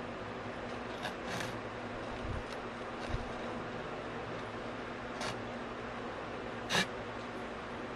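A young woman bites and chews crunchy food close to a microphone.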